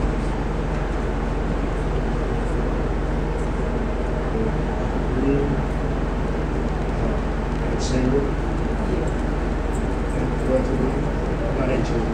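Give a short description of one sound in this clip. Men and women chatter indistinctly in the background.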